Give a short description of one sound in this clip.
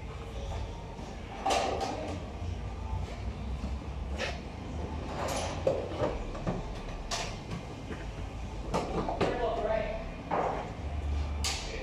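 Work boots scuff and step on a hard floor.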